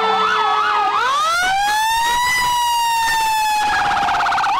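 A fire truck's horn blares up close.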